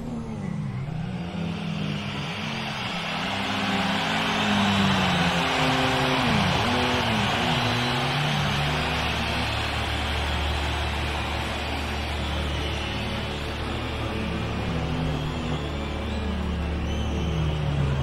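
Tyres screech loudly as a car drifts.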